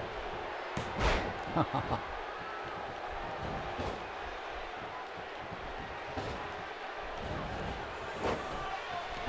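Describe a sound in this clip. Bodies slam hard onto a wrestling ring mat.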